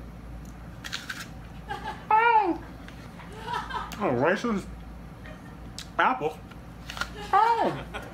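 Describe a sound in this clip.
A man bites into a crisp fruit.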